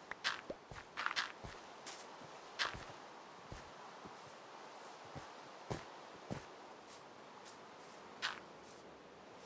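Blocks break and pop with short crunches.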